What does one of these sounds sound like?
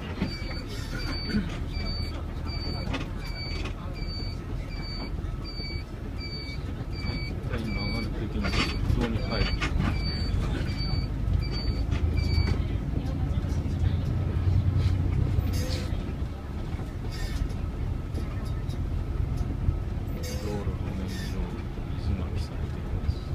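A bus engine rumbles steadily as the bus drives along a road.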